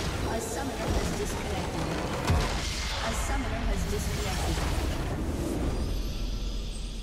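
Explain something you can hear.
Game spell effects crash and whoosh loudly in a battle.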